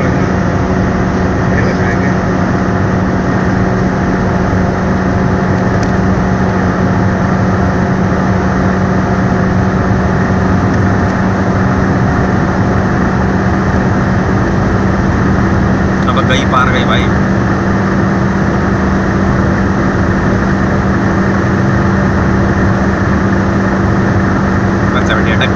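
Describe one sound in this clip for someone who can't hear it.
A car engine drones steadily at high speed.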